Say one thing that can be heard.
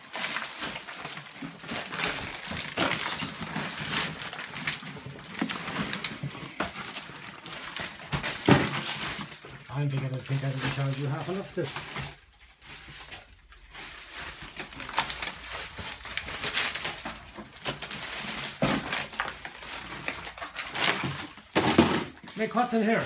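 Footsteps crunch and rustle over piled rubbish and plastic.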